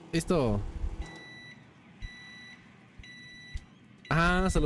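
A microwave beeps several times.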